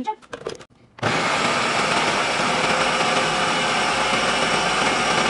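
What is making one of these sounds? A food processor whirs loudly and steadily.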